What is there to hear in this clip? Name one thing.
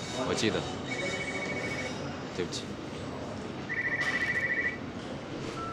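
A mobile phone rings with short electronic beeps.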